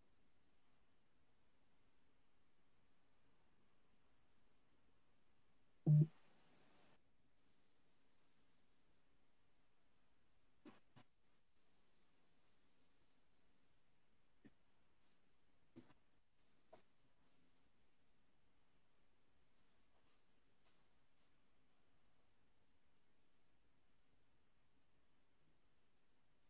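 Pencils scratch softly on paper.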